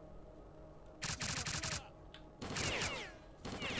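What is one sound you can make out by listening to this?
A rifle fires rapid bursts of shots up close.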